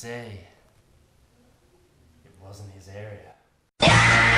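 A young man talks cheerfully close by.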